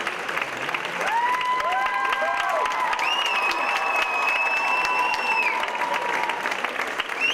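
A harmonium plays long, held notes.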